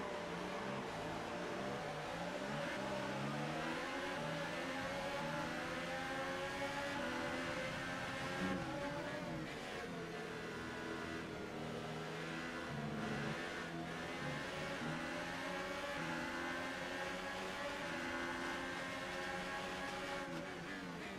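A racing car engine screams at high revs, rising and dropping as it shifts gears.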